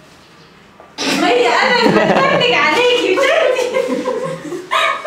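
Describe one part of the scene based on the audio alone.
A young woman laughs and talks with animation close by.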